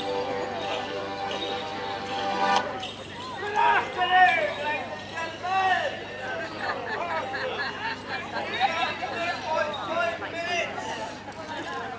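Small bells jingle on the legs of stamping dancers.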